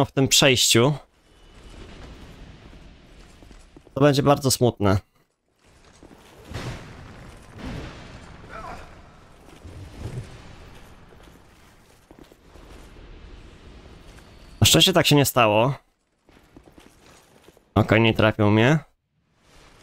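A loud shimmering magical chime rings out in short bursts.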